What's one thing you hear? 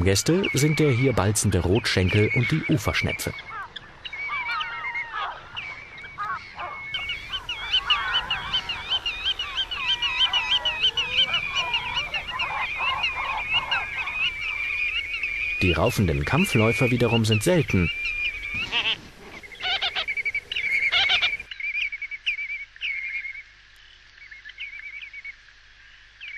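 Wading birds call with shrill, rapid piping.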